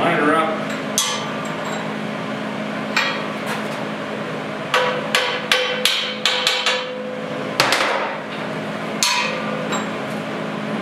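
Metal pieces clink and clank against a steel bench.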